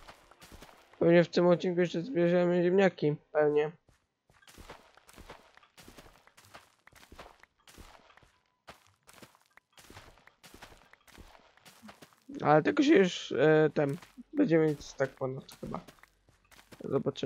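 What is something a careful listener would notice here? A boy speaks with animation into a close microphone.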